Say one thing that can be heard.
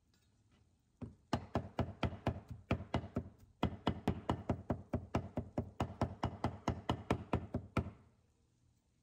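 A knife chops rapidly on a cutting board.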